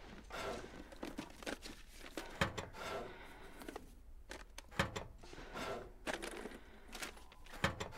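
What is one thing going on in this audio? Things are rummaged and knocked about in a drawer.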